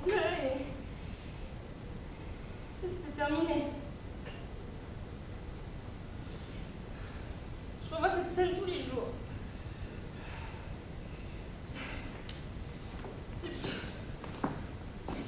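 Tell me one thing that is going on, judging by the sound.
A young woman speaks with emotion in a hall.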